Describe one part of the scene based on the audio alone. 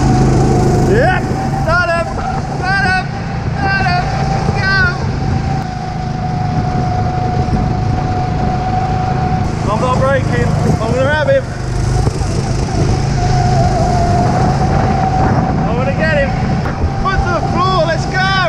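Kart tyres squeal in short bursts.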